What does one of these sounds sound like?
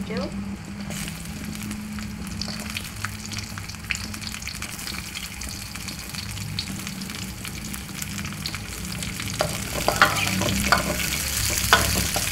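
Chillies and squid sizzle in hot oil in a wok.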